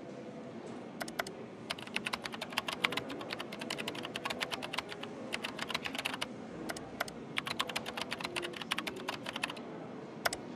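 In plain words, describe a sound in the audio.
Soft footsteps patter on a hard floor.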